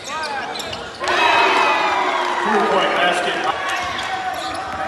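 A crowd cheers loudly in an echoing arena.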